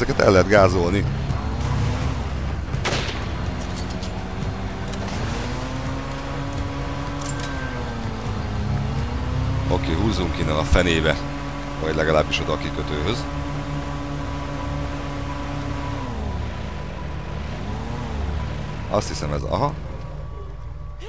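An airboat engine drones loudly, its pitch rising and falling.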